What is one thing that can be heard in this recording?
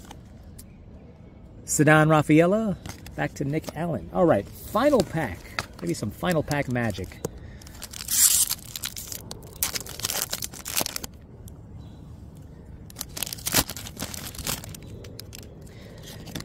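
Trading cards slide and rustle against each other.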